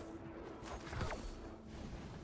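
A magical ice blast whooshes and crackles.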